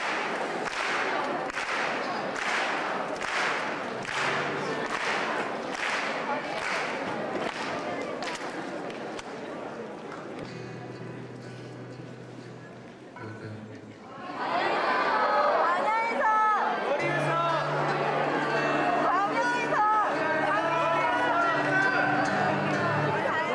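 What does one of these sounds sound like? A steel-string acoustic guitar is strummed in a large echoing hall.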